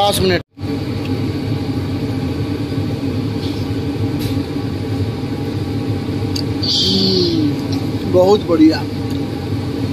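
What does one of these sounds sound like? A man chews food with his mouth close to the microphone.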